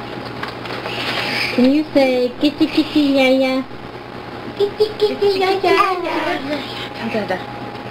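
A young child squeals and babbles close by.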